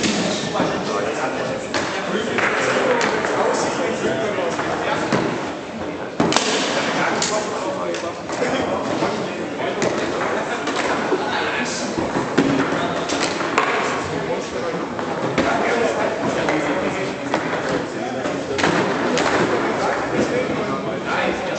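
Foosball rods rattle and thump as players spin and slide them.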